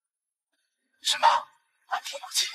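A young woman whispers softly, close by.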